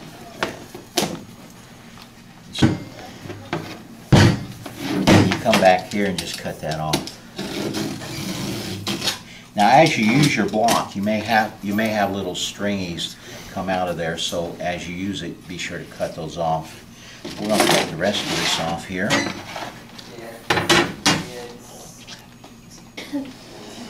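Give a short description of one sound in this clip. Stiff board flexes and taps against a table.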